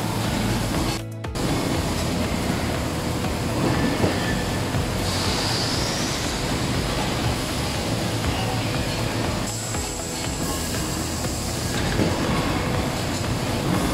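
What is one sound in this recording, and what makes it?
A metal cylinder clanks as it is set into a machine.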